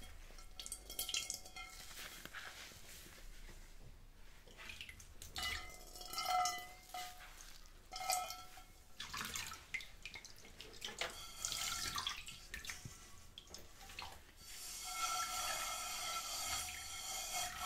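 A hand scrubs a metal pan, squeaking and scraping.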